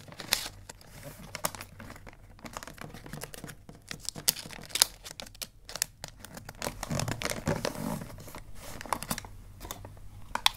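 Wrapping paper crinkles and rustles under fingers.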